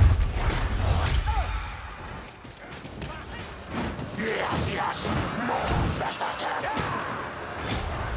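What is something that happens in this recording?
Heavy weapon blows thud and crash in a fight.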